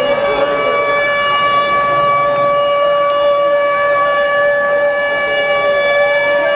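A large crowd cheers and chants loudly in the open air.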